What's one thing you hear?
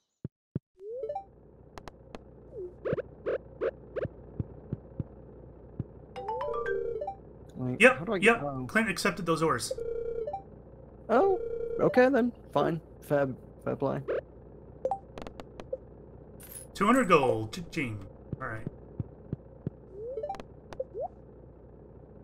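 Short electronic game blips and chimes sound.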